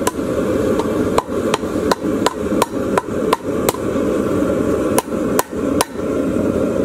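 A hammer strikes hot metal on an anvil with sharp ringing clangs.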